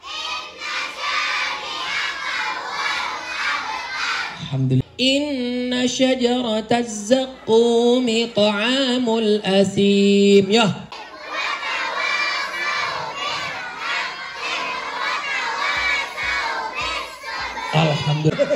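A crowd of children sings together loudly.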